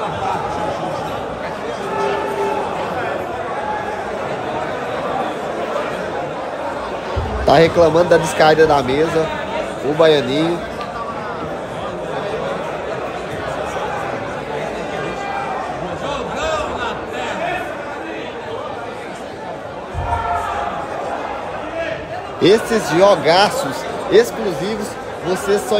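A crowd murmurs and chatters throughout.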